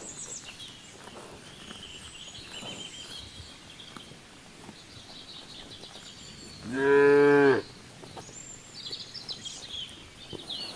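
Cows tear and munch grass close by.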